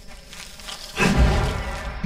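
A fiery spell bursts with a loud whoosh.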